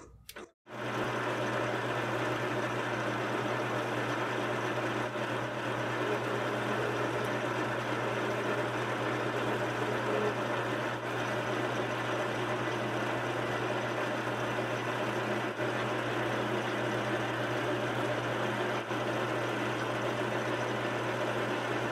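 A metal cutting tool scrapes against a spinning metal part.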